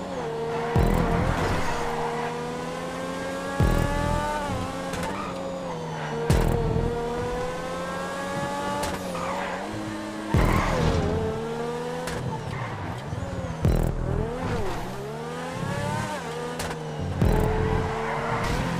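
Tyres squeal through tight corners.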